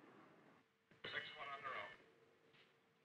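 A man speaks into a radio microphone, heard faintly.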